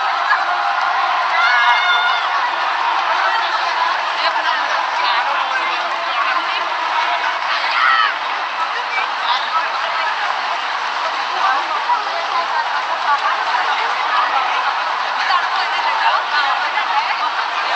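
A large crowd of people chatters and calls out outdoors.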